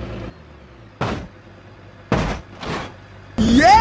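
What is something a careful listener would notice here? A car thumps down a flight of steps.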